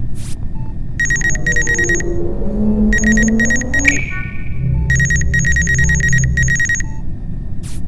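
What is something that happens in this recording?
A scanner whirs and beeps with an electronic drone.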